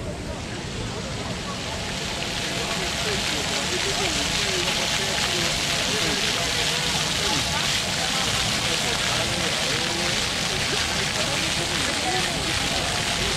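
Fountain jets splash and hiss steadily, growing louder up close.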